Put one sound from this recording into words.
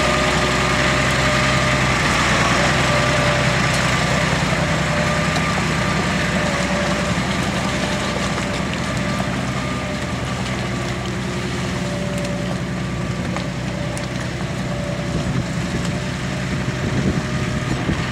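A harvester clanks and rattles as it rolls through mud.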